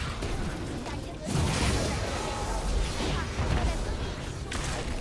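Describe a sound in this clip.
Game fighting effects whoosh and crackle.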